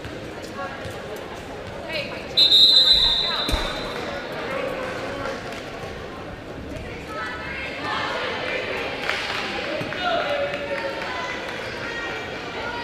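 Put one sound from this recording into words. A crowd in an echoing gym chatters and cheers.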